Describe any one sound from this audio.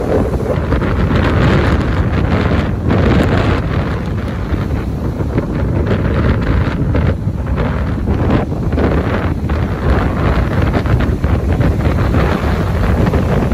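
A kite flaps loudly in gusty wind.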